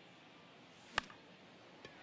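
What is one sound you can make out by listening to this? A bat cracks as it hits a ball.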